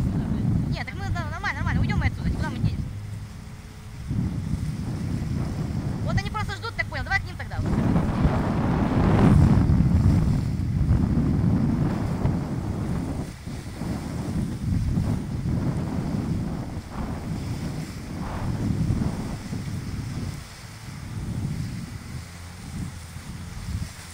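Gusty wind buffets outdoors.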